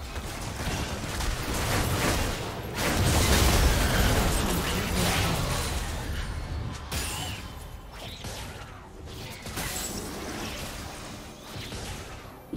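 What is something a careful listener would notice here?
Game spell effects whoosh and crackle in a fast fight.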